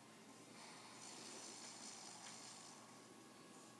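A swirling game sound effect whooshes through a small speaker.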